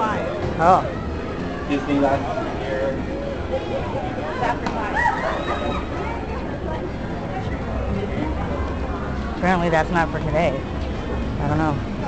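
A crowd of people chatters and calls out nearby outdoors.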